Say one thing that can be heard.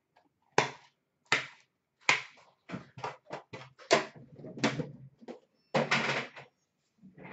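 Hands tap and rustle card packs.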